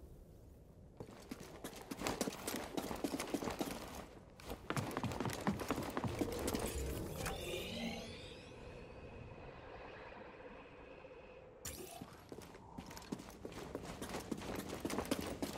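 Footsteps run quickly over rock.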